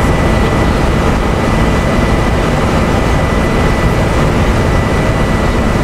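A bus engine hums steadily as it drives along.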